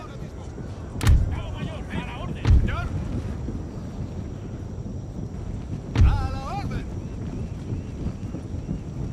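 A crowd of soldiers fights, with a dull, rumbling battle din.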